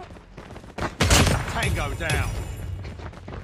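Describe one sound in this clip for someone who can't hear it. Gunshots fire in a quick burst.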